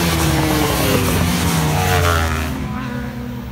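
Motorcycle engines roar loudly as they race past close by.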